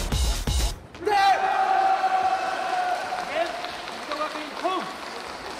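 A group of young women cheer loudly in a large echoing hall.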